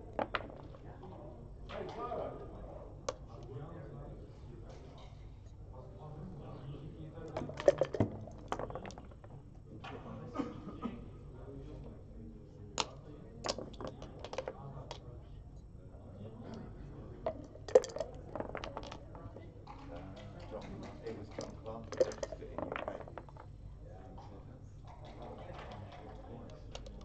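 Backgammon checkers click as they are moved.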